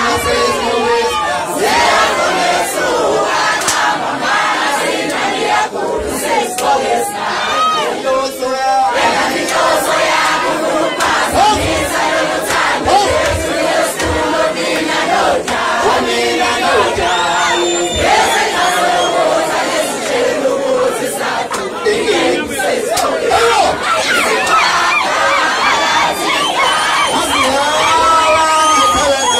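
A crowd of men and women sings and chants loudly.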